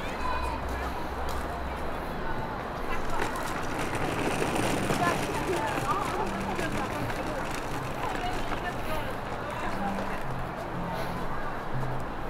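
Suitcase wheels roll over paving.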